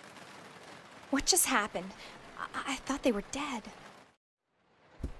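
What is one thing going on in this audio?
A young woman speaks quietly and fearfully.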